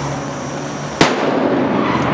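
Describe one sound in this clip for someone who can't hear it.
A firecracker bangs sharply outdoors.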